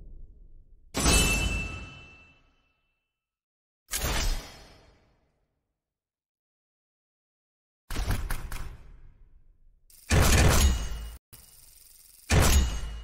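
Game menu sound effects whoosh and chime in short bursts.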